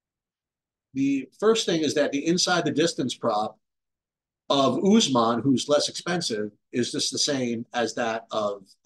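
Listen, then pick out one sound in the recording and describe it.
A man talks calmly into a microphone, close by.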